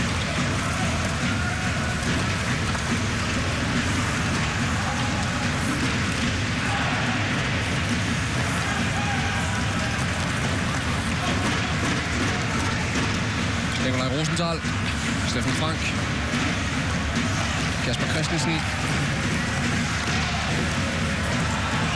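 A crowd roars steadily in a large echoing arena.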